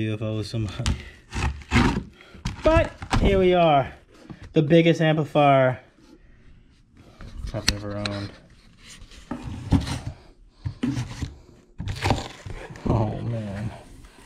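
A cardboard box scrapes and rustles as it is handled.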